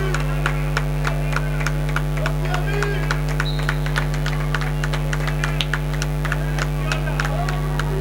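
A ball bounces on a wooden floor in a large echoing hall.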